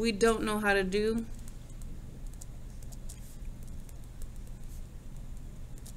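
A felt-tip pen squeaks softly across paper.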